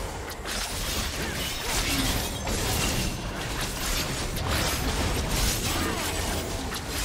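Game sound effects of spells and attacks clash and burst.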